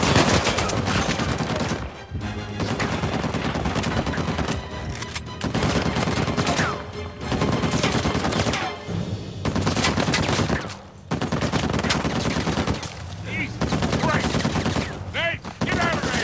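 A man shouts urgently.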